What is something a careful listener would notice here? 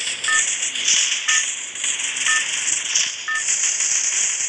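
A countdown beeps once a second.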